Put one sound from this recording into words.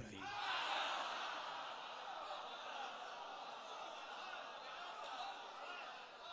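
A crowd of men chants along loudly.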